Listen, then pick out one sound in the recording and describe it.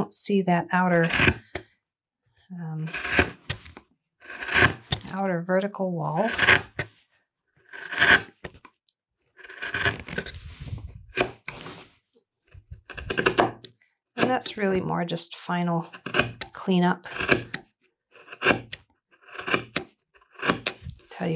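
A chisel cuts and scrapes into wood.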